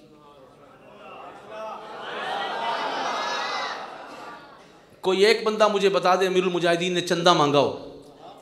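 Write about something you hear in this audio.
A man speaks with animation through a microphone in an echoing hall.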